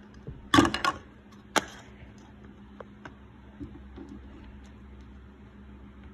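Hard plastic cups knock together as a hand stacks them.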